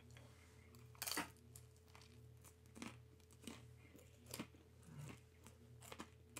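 A man chews and smacks his lips loudly up close.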